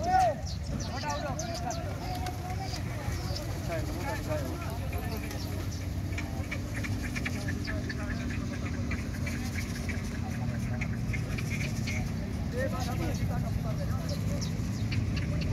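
A crowd of men chatters outdoors.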